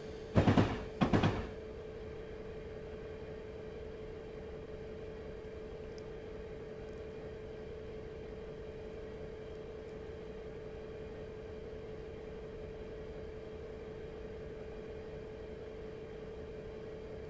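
A diesel locomotive engine drones steadily.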